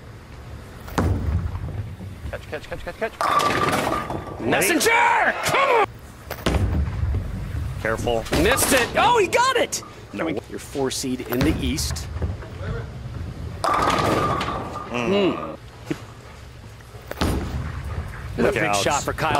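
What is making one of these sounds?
A bowling ball rolls down a wooden lane with a low rumble.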